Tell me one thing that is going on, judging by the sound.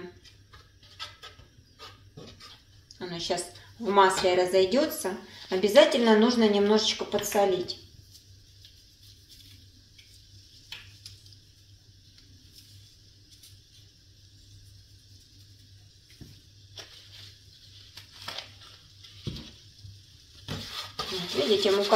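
A spoon scrapes and stirs in a frying pan.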